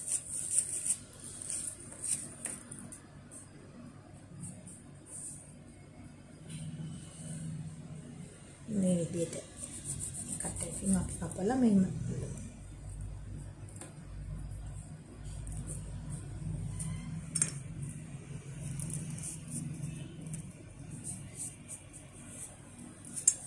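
Fingers softly press and rub clay on a hard board.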